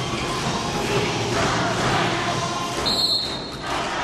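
A volleyball is spiked with a sharp slap.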